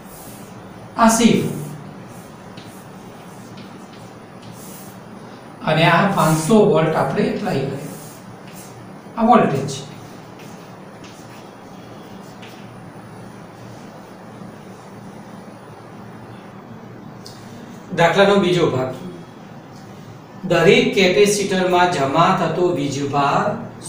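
A middle-aged man speaks calmly, as if explaining a lesson.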